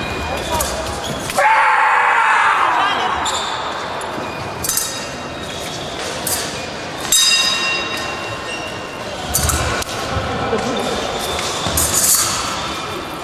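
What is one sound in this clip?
Fencing blades clash and ring with a metallic clink in a large echoing hall.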